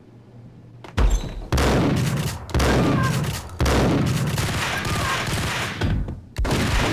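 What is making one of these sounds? A shotgun fires with heavy blasts.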